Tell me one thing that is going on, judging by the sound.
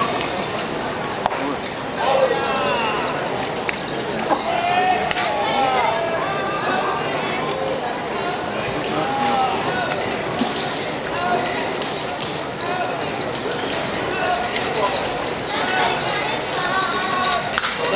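A pitched ball smacks into a catcher's mitt.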